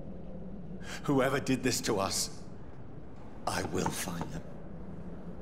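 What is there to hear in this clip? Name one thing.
A man speaks quietly and sorrowfully, close by.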